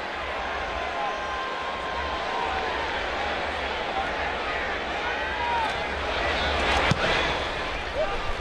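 A large stadium crowd roars and cheers steadily outdoors.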